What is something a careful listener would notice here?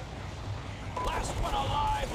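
Game gunfire crackles in quick bursts.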